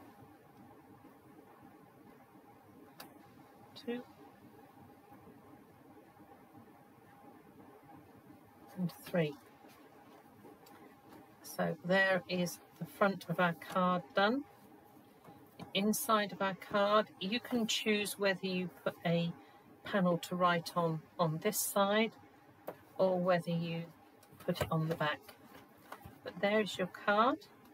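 A stiff paper card rustles and taps as it is handled.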